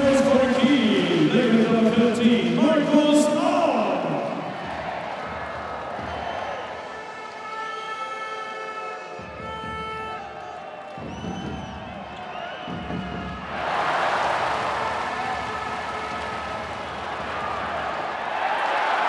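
A large crowd roars in an echoing arena.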